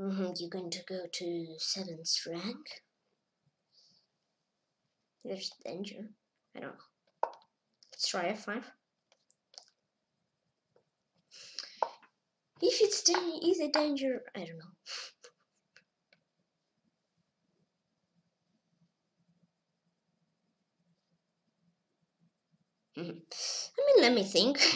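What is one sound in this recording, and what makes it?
A boy talks with animation, close to a microphone, with pauses.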